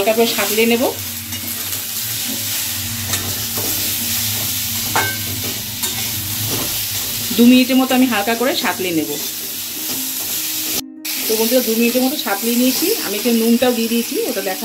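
A metal spatula scrapes and stirs food in a metal pan.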